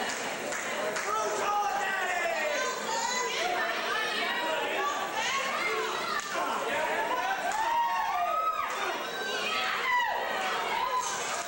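A crowd of spectators shouts and cheers loudly throughout.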